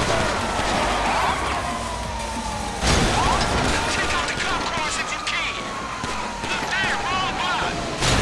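A car engine roars at speed.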